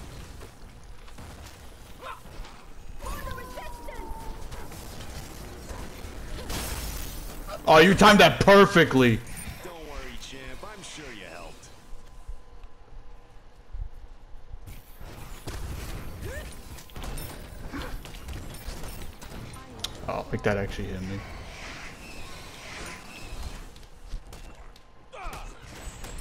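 Weapons clash and strike in a busy fight.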